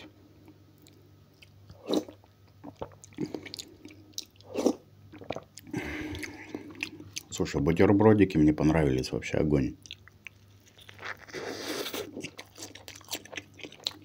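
A man chews and slurps food noisily.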